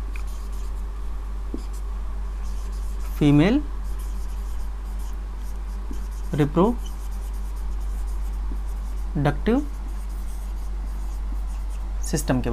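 A marker squeaks faintly on a board.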